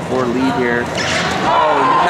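A wrestler thuds onto a mat.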